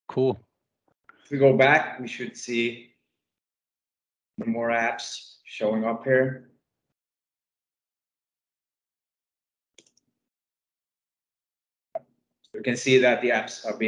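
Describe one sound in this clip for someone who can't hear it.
A man speaks calmly through an online call headset.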